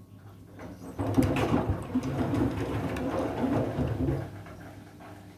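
Water sloshes and splashes inside a washing machine.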